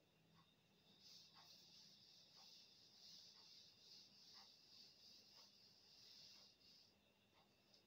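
A duster rubs softly across a blackboard.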